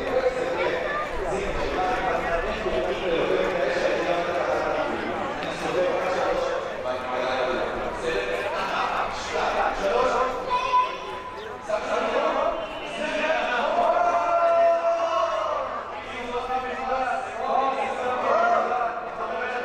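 Children call out and shout.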